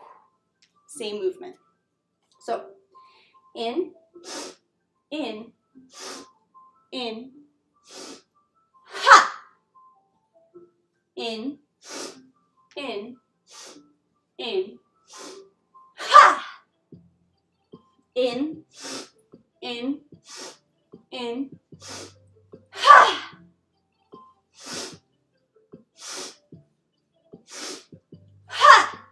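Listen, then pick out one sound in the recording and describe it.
A young woman speaks calmly, close by, in short phrases.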